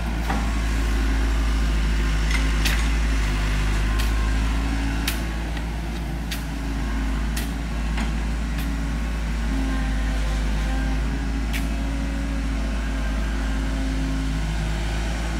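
An excavator engine rumbles steadily in the distance.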